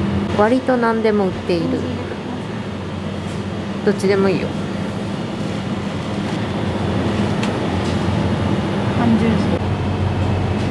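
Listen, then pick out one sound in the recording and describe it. A refrigerated display case hums steadily.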